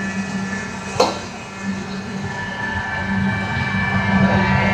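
A metal ladle clinks against a pot of sauce.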